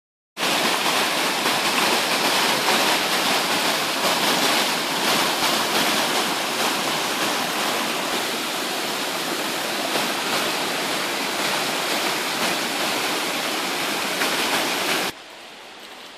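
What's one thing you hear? A stream rushes and splashes loudly over rocks.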